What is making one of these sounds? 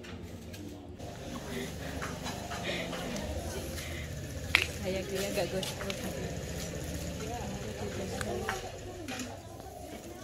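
Young women chat and laugh together nearby.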